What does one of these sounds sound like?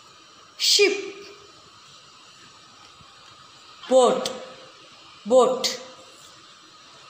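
A child says short single words clearly, close by.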